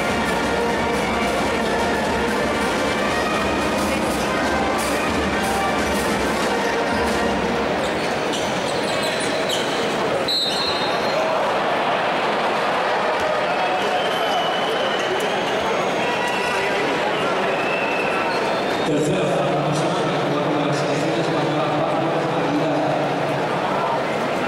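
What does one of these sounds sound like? A large crowd cheers and chatters loudly in an echoing arena.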